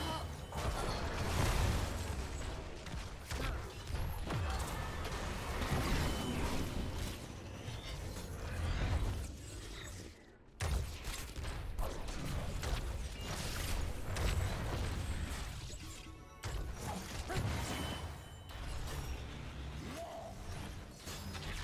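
Video game combat effects blast and crackle in quick bursts.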